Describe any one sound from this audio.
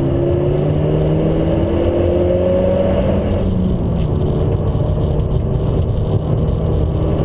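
Tyres and wind rumble steadily.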